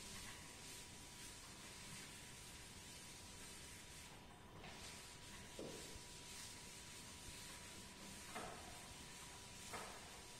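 A duster rubs and wipes across a chalkboard.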